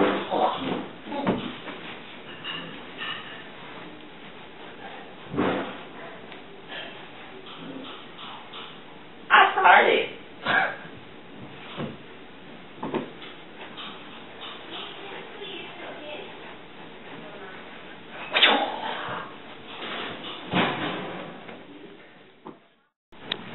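Feet and hands thump and scuff on a floor.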